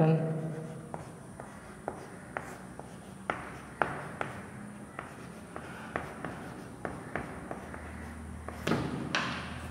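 Chalk taps and scratches on a chalkboard.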